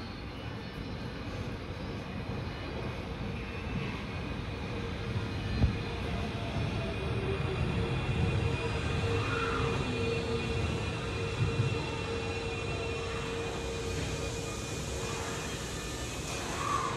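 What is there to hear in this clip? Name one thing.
A train rolls into the station with a deep rumble that grows louder.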